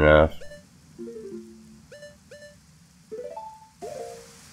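Short electronic menu tones blip.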